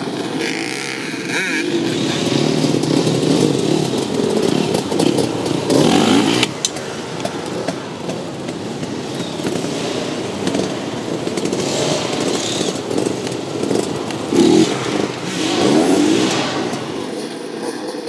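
Several dirt bike engines rev and buzz as they race past.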